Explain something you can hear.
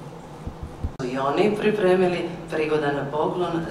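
A woman speaks calmly through a microphone in a large hall.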